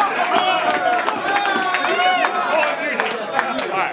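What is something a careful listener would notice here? People in a crowd clap.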